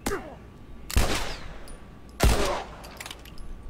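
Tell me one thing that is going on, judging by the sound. Gunshots ring out sharply, echoing briefly.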